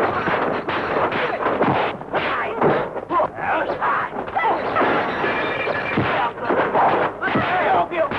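Limbs whoosh through the air in quick swings.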